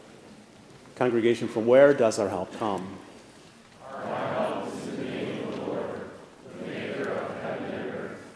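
A man speaks through a microphone in a large echoing hall.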